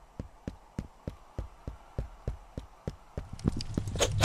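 Footsteps tap quickly on wooden stairs and floorboards.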